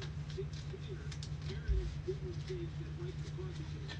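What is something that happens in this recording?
Trading cards rustle and slide as a hand flips through them.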